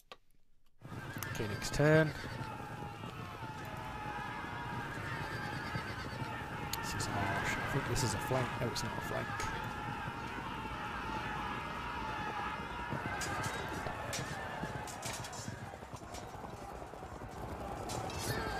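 A crowd of soldiers clashes and shouts.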